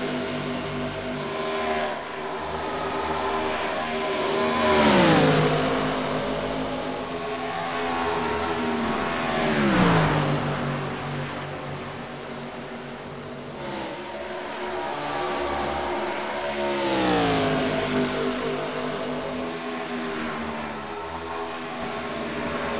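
Racing car engines roar steadily at high speed.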